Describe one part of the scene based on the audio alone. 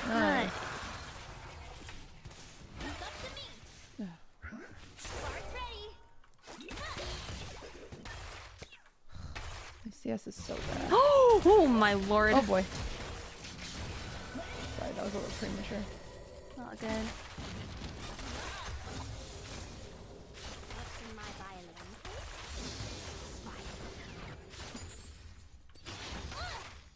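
Fantasy battle sound effects clash and zap.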